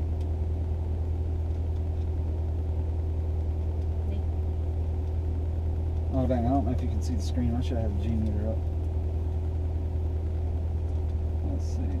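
A car engine drones low and steady from inside the car.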